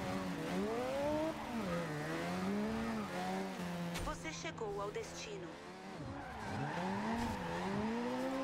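A sports car engine revs up and down while drifting.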